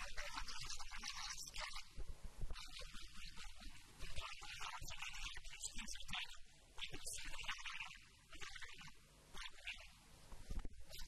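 A young man speaks with animation into a microphone through a loudspeaker.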